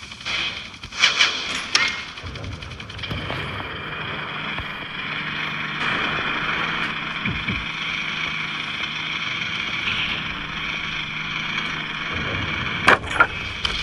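Guns fire in short sharp bursts.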